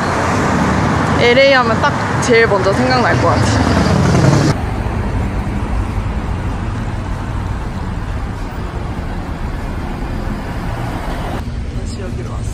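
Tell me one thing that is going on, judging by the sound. Cars drive past on a nearby street.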